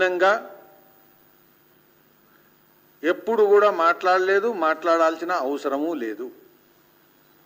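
A man speaks with animation into a microphone close by.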